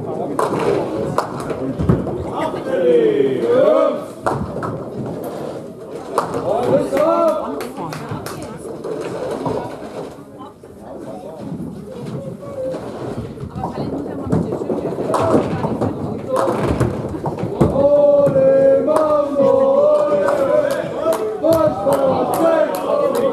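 Bowling balls thud onto the lanes and roll with a low rumble.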